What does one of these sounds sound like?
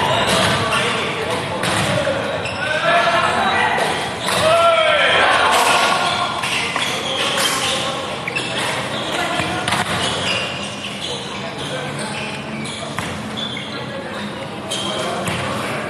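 A crowd of young men shouts and chatters in a large echoing hall.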